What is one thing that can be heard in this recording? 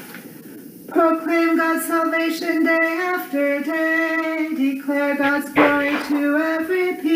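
A woman sings through a microphone, in a steady, clear voice.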